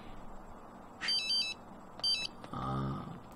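Short electronic chimes play as a game menu opens.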